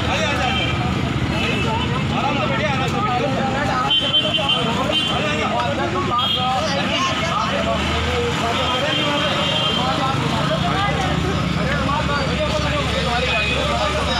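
A crowd of men shout and talk over one another close by.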